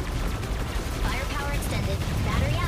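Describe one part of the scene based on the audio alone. Bright electronic chirps and zaps sound over the battle.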